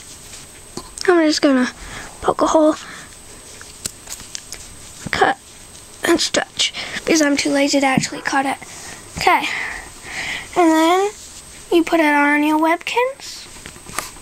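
A young child talks in a high, playful voice close by.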